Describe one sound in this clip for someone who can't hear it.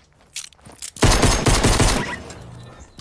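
Rapid gunfire rattles loudly in a quick burst.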